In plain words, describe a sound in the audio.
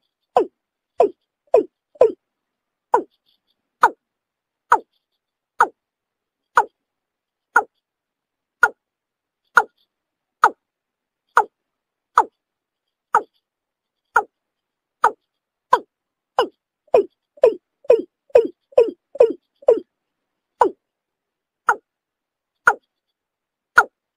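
A bird gives short, sharp calls again and again.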